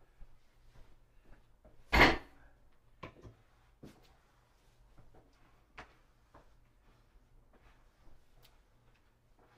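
Footsteps thud on a hard floor close by.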